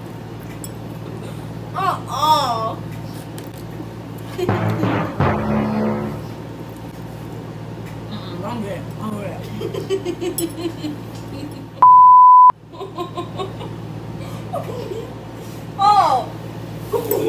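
A young girl laughs loudly close by.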